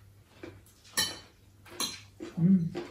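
Cutlery clinks against plates.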